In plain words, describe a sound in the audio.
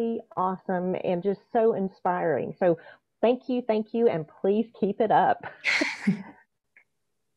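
An older woman speaks warmly over an online call.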